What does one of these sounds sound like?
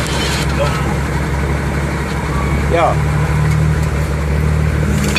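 A truck engine idles close by with a low, steady rumble.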